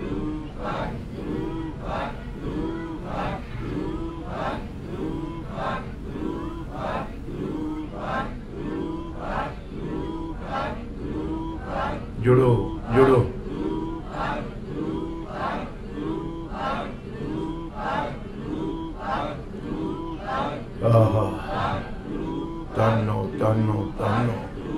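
An elderly man recites in a steady rhythm through a microphone and loudspeakers.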